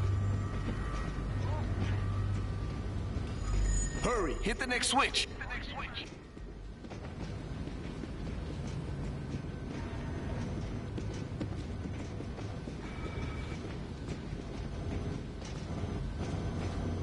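Footsteps clatter on a metal floor.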